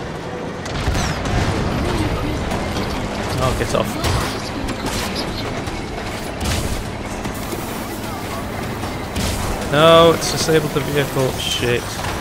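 A heavy tank engine rumbles and clanks nearby.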